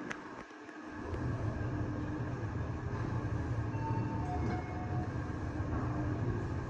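An elevator car hums steadily as it moves.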